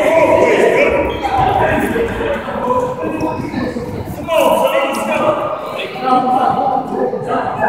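Men and women shout and cheer nearby in a large echoing hall.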